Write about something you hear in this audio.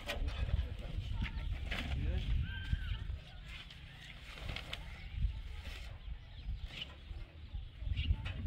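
A canvas sheet rustles and flaps as it is pulled over a stack of roof tiles.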